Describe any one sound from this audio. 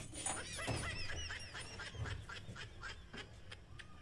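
A metal cabinet door clicks and swings open.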